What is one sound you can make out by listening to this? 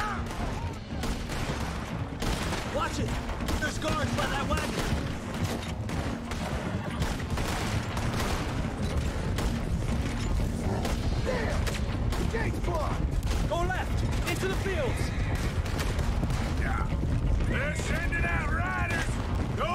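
Horses gallop with heavy hoofbeats on a dirt track.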